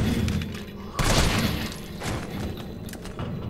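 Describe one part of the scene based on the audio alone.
Gunshots fire, one after another.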